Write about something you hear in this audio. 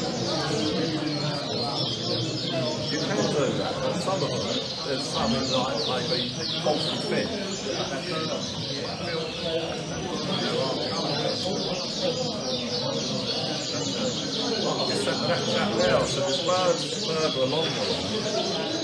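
Many canaries sing and chirp in bright trills.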